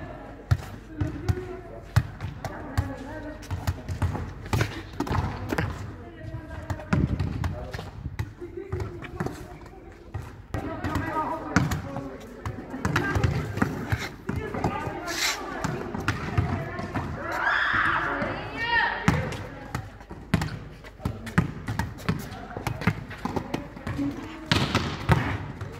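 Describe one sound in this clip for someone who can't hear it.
A volleyball thumps off a boy's arms again and again outdoors.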